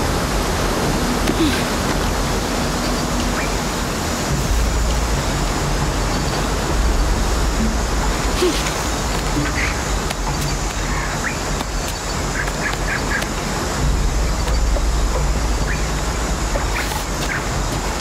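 Hands scrape and grip on rock while climbing.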